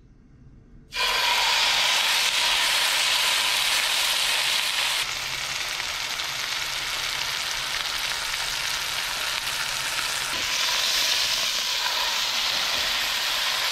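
Meat sizzles loudly in hot oil in a pan.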